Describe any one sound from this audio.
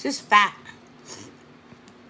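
A woman sucks and smacks her lips while eating.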